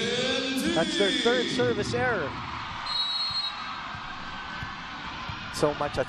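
A crowd chants and cheers loudly in a large echoing hall.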